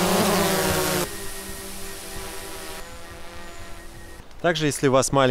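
A drone hums steadily as it flies overhead.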